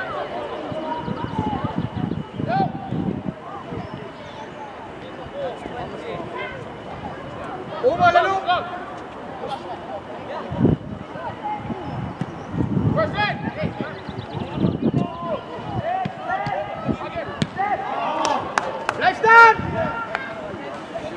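Players shout and call to each other across an open outdoor pitch.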